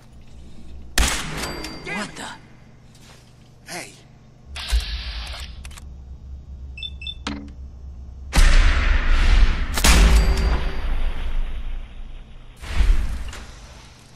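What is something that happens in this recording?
A heavy gun fires with loud, booming blasts.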